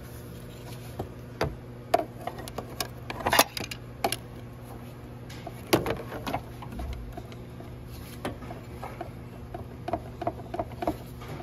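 Gloved fingers tap and click against metal engine parts.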